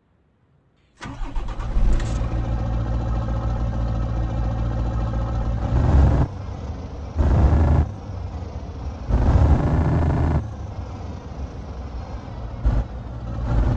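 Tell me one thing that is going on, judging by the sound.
A diesel truck engine starts up and idles.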